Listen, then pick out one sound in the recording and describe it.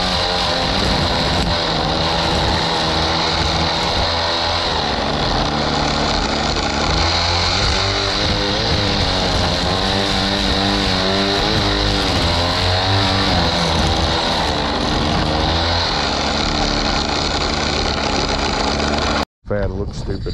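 A string trimmer engine whines loudly and steadily close by.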